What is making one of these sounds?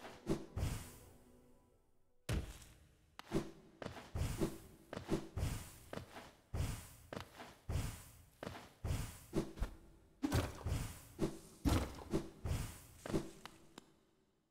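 A blade swishes and strikes again and again in quick bursts.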